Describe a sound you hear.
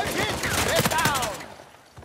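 An automatic rifle fires.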